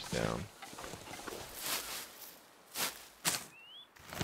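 Twigs of a bush rustle as berries are picked.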